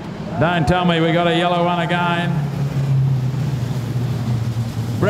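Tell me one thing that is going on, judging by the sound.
Race car engines roar around a dirt track.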